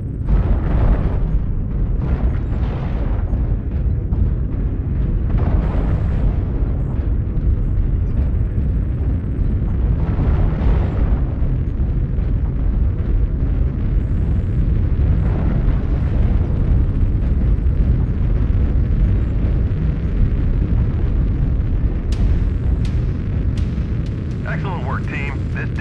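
A heavy machine rumbles steadily and deeply.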